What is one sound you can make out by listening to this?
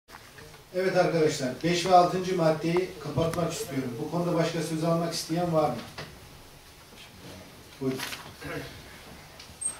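A middle-aged man speaks into a microphone in a calm, formal way, in a room with some echo.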